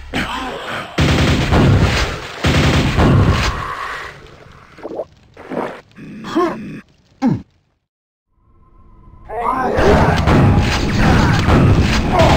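A double-barrelled shotgun blasts.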